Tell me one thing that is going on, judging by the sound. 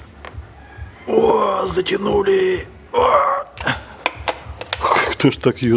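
A wrench turns a bolt with a light metal rattle.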